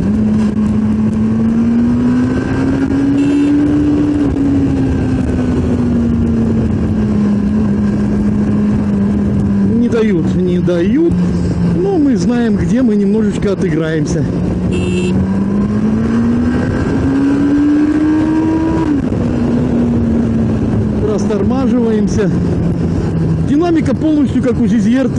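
A motorcycle engine drones steadily, its pitch slowly rising and falling.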